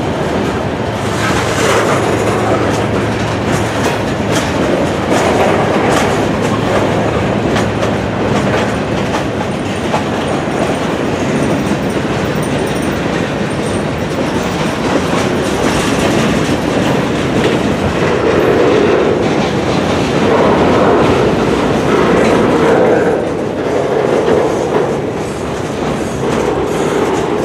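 Steel wheels clack and squeal on the rails.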